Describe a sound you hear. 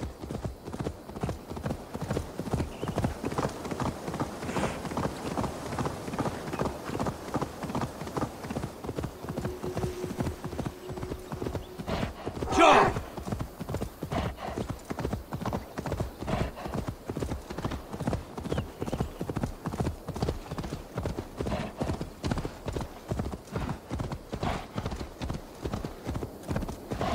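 Hooves thud rapidly on the ground as a deer gallops.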